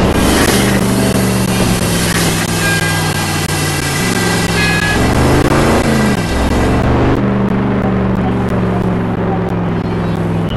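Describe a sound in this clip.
A monster truck engine roars and revs.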